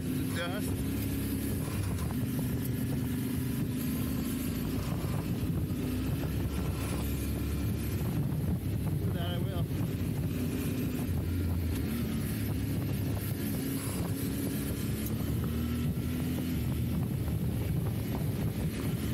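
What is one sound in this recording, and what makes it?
A motorcycle engine rumbles steadily, rising and falling with the throttle.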